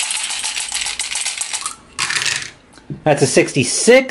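Dice rattle and tumble into a box.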